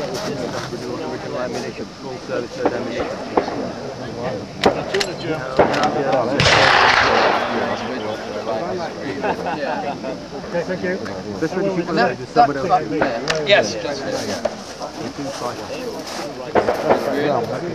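A middle-aged man talks calmly nearby, outdoors.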